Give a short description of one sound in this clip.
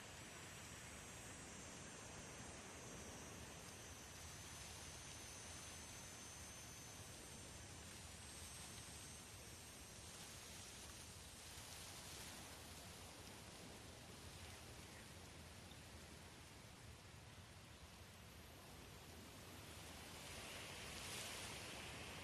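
Wind blows steadily through dry grass outdoors.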